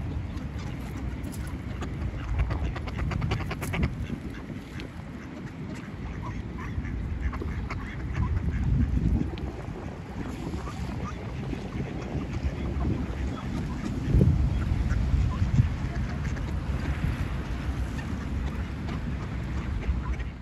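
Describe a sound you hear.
Ducks quack softly nearby.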